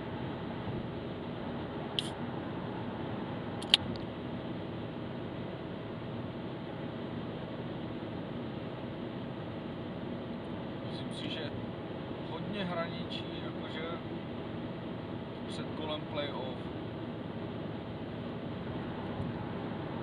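Tyres roll steadily on a highway.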